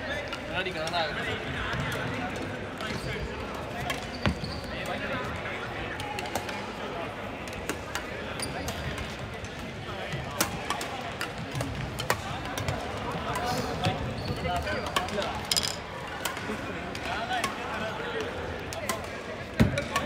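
Shoes squeak on the wooden court.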